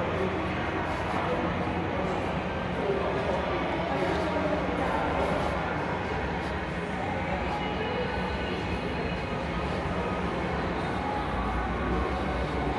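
Footsteps echo steadily along a long tiled underpass.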